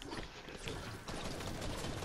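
A video game pickaxe strikes a brick wall.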